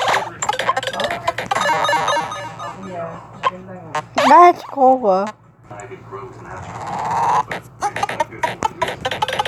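Electronic game sounds blip and chime rapidly.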